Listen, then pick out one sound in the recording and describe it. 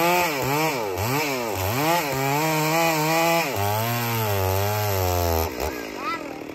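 A chainsaw engine revs loudly, rising and falling in pitch.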